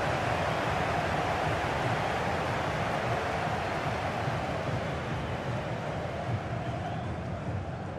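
A large stadium crowd roars and cheers loudly throughout.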